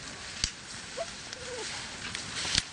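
A wild turkey gives a short call nearby.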